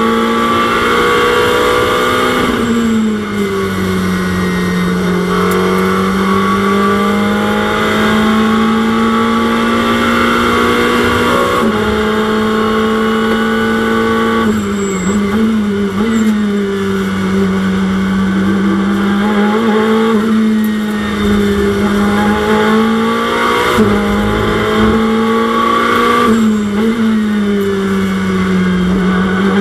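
A racing car engine roars loudly, its pitch rising and falling as it shifts gears.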